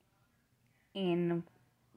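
A woman cries out loudly for a moment.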